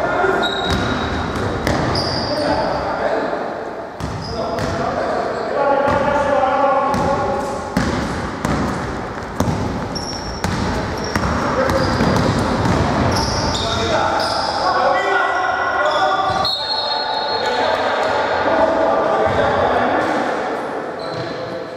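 Players shout to each other in a large echoing gym.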